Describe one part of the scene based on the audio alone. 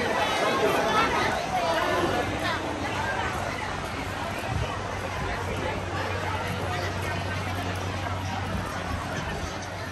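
A crowd of adults chatters outdoors in a busy street.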